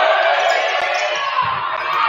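A basketball bounces on a hard gym floor.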